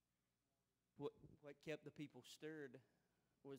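A man speaks loudly and with animation through a microphone in a large echoing hall.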